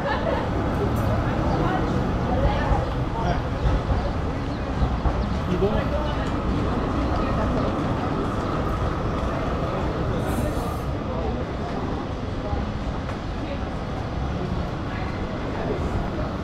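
Busy city street noise hums steadily outdoors.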